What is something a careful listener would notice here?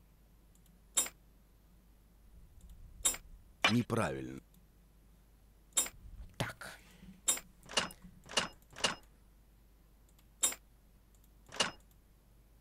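Short game clicks sound as puzzle pieces turn into place.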